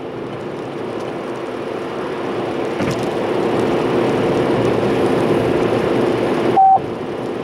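A car's engine and tyres hum steadily on a road from inside the car.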